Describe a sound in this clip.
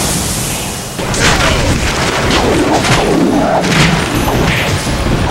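Green magic bursts and crackles noisily.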